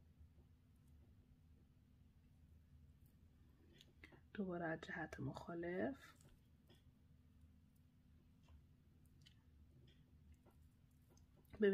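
Small beads click faintly against each other as they are threaded.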